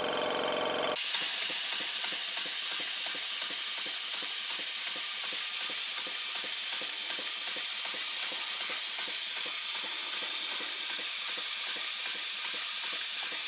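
Steam hisses loudly and steadily from a small engine.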